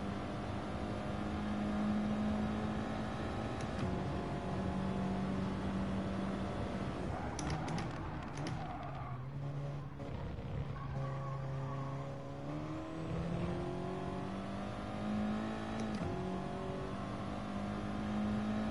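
A racing car engine roars steadily, its pitch dropping as it slows and rising again as it speeds up.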